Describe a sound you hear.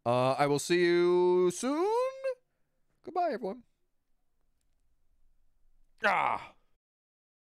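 A young man sings and wails dramatically close to a microphone.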